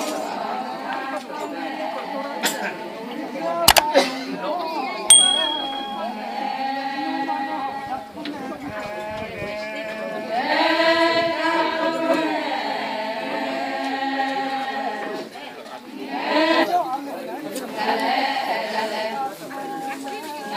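A large group of women sings together outdoors.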